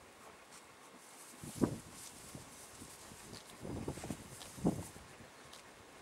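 A dog sniffs close to the ground.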